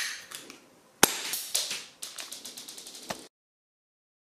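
A pistol's mechanism clicks sharply as it is handled.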